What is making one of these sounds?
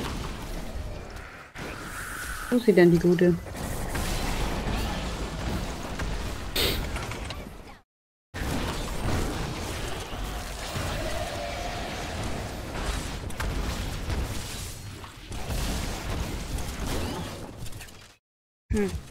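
Magic blasts and explosions crackle and boom in a fast fight.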